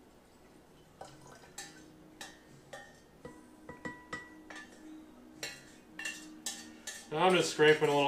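A metal spoon scrapes and taps against a metal pot.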